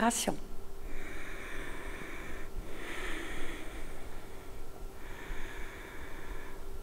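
An older woman speaks calmly into a clip-on microphone, close by.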